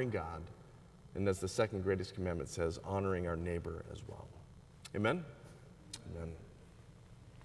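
A middle-aged man speaks calmly into a microphone in a large echoing hall.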